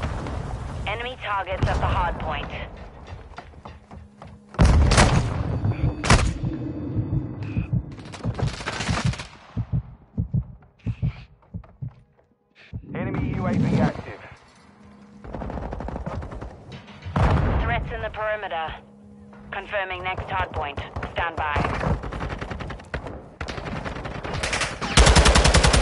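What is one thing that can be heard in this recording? Rapid gunfire cracks in quick bursts.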